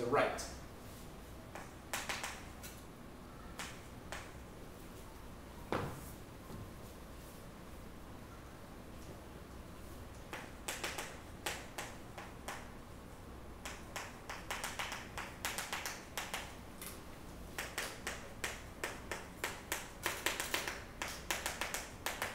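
Chalk taps and scrapes across a blackboard in quick bursts.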